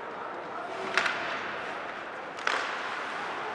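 A hockey stick smacks a puck sharply.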